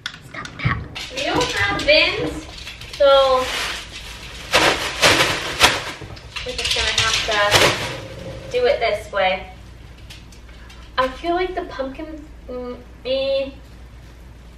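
A young woman talks in a room.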